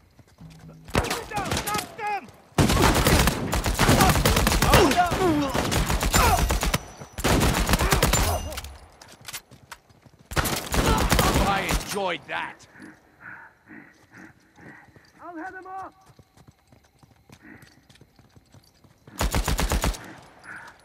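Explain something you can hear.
Automatic gunfire rattles in loud rapid bursts.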